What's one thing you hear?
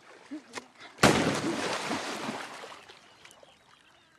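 Water splashes loudly as a man falls into it.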